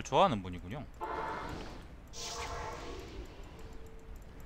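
A magical portal whooshes as a figure passes through it.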